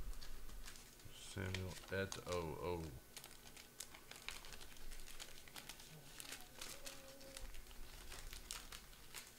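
A plastic card sleeve crinkles as it is handled.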